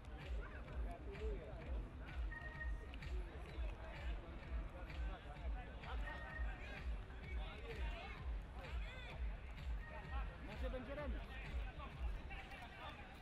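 Men talk among themselves nearby, outdoors.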